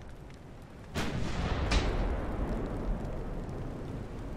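A large explosion booms and rumbles away.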